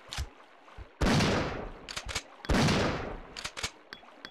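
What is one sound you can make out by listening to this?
A handgun fires shots that echo in a tunnel.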